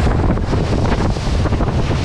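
A bobsled coaster car splashes through water.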